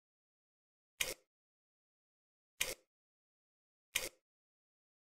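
Soft footsteps tap slowly on a hard floor.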